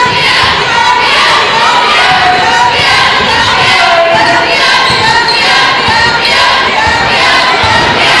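A crowd cheers and shouts throughout a large echoing gym.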